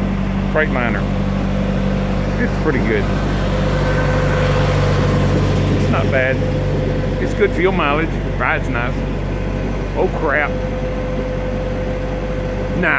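A truck engine idles with a steady low hum nearby.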